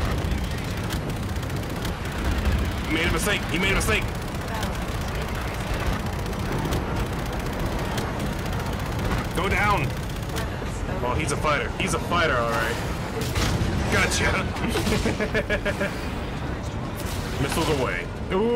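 Gunfire and explosions rumble steadily from a game.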